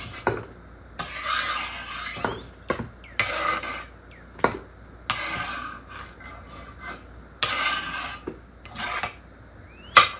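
A knife blade scrapes across a cutting board.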